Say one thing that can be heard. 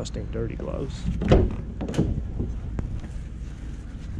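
A van's rear door is unlatched and swung open with a clunk.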